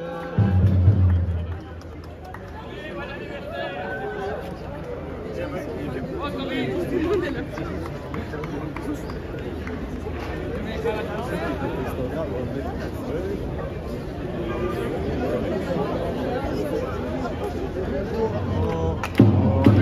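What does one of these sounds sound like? A crowd of men and women chatter outdoors around the listener.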